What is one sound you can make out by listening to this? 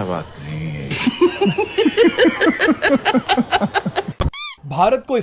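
A man laughs loudly in rapid bursts.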